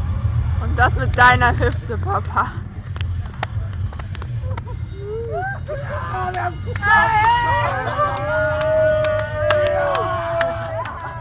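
A crowd of men shouts and sings loudly outdoors.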